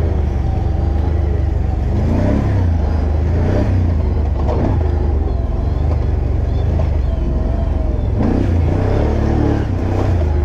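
An off-road vehicle's engine roars loudly and revs up and down.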